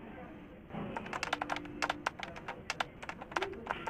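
Keys clatter quickly on a computer keyboard.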